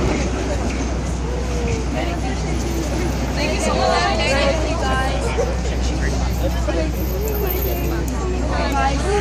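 Young women talk and laugh excitedly nearby.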